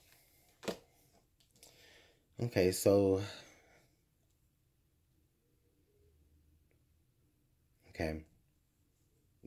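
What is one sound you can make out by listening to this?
Cards are tapped and slid on a cloth-covered table.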